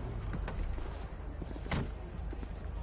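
A car door opens with a click.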